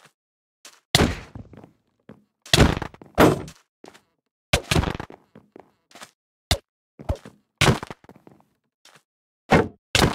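Sword blows land with sharp, punchy thuds in quick succession.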